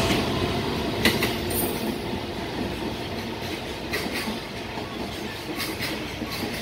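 Freight wagon wheels clatter over rail joints.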